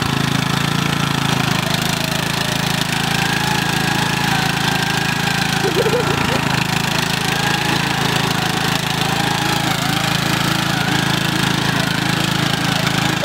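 A riding lawn mower engine runs under load.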